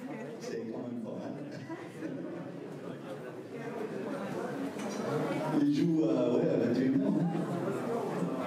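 An elderly man sings into a microphone through loudspeakers.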